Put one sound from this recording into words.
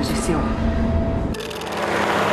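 A woman speaks intently, close by.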